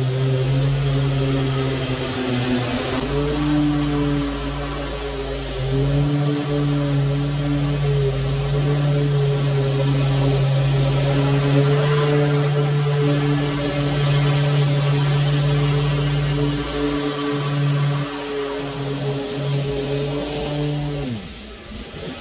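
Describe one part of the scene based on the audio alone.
A petrol lawn mower engine drones steadily nearby, then winds down and stops.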